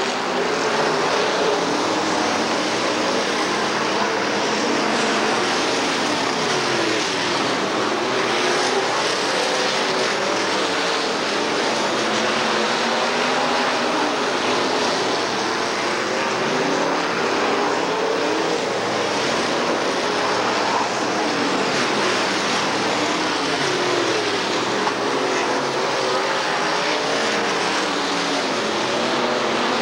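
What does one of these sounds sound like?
Race car engines roar loudly, their pitch rising and falling as the cars pass.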